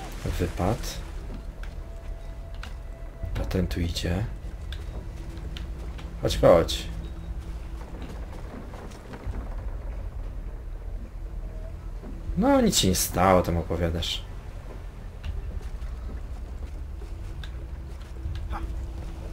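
A man climbs a wooden ship's hull, with creaking and scraping.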